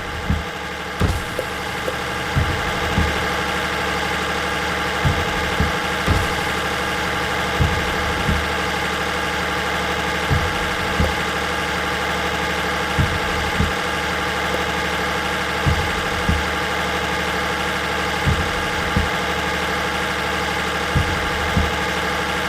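Truck tyres thump in pairs over road joints.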